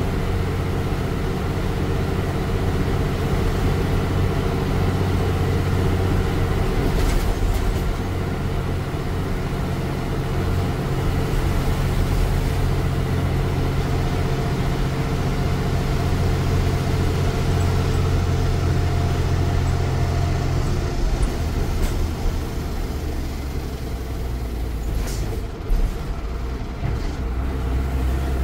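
A bus rattles and bumps over the road.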